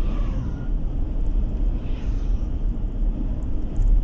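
An oncoming bus passes by.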